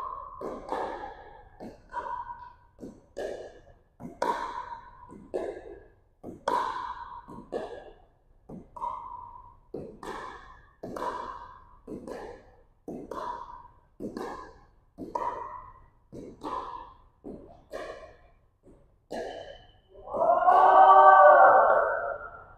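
Paddles pop against a plastic ball in an echoing hall.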